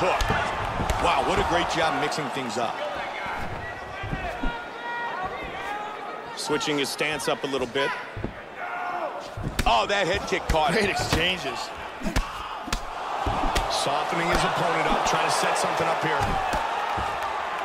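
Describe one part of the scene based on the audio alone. A kick lands with a heavy thud.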